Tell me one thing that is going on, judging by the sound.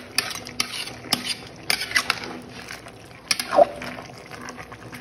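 Food sizzles and bubbles in a pot.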